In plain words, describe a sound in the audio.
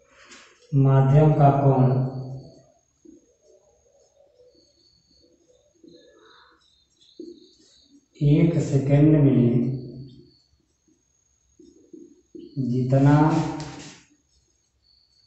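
A man speaks calmly nearby in short bursts with pauses.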